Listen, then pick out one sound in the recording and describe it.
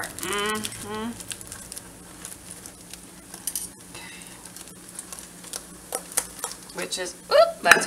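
Metal tongs clink and scrape against a cooking pot.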